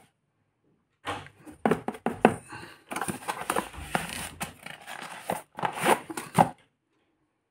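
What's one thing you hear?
Cardboard packaging rustles and scrapes as it is handled.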